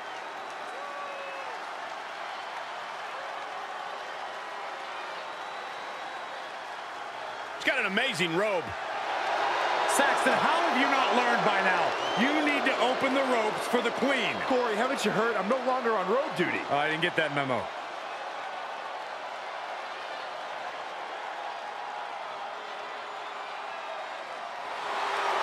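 A crowd cheers loudly in a large echoing arena.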